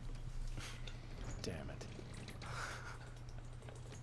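A man mutters softly to himself.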